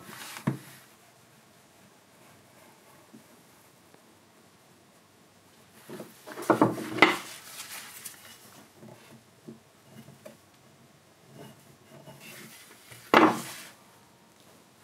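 A chisel shaves and scrapes wood in short strokes.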